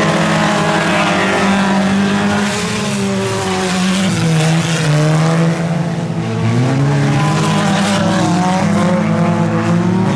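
Tyres crunch and skid on loose dirt.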